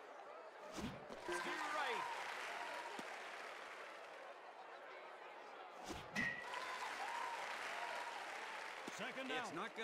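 A crowd cheers and roars in a stadium.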